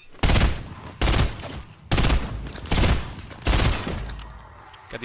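A rifle fires loud, sharp shots in quick bursts.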